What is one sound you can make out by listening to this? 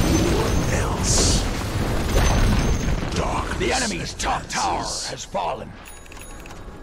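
Weapons clash and strike in a fantasy battle.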